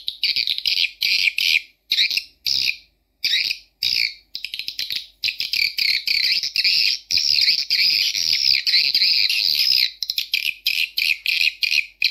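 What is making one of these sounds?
A small tweeter loudspeaker plays shrill, choppy high-pitched sound in short bursts.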